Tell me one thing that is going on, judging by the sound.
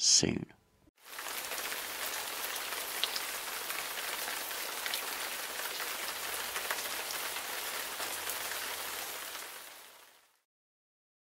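Rain falls steadily outdoors with a soft, even hiss.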